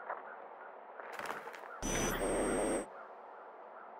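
A newspaper slaps down onto pavement.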